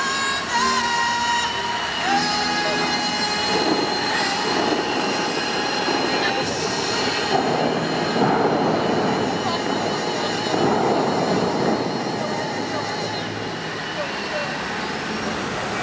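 Fountain jets gush and spray water with a steady roar.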